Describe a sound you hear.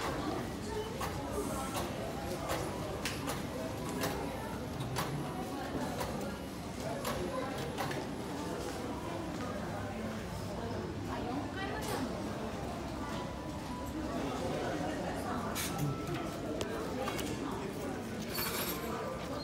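A crowd of people murmurs and chatters nearby in an echoing indoor space.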